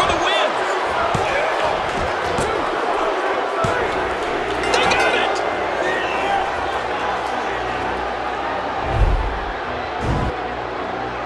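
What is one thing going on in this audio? A large crowd cheers loudly in a big echoing arena.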